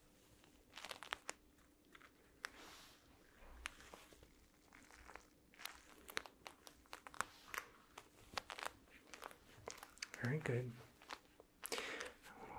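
Soft cloth pads rub and scratch against a fuzzy microphone cover up close.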